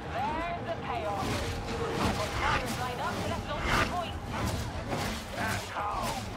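Energy weapons crackle and zap in bursts.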